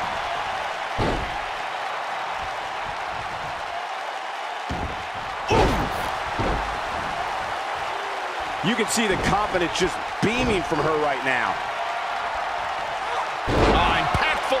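Bodies slam heavily onto a wrestling ring mat with loud thuds.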